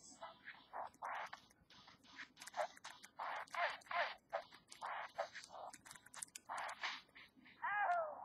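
Punches land with quick electronic thuds and bursts of noise from a handheld game console speaker.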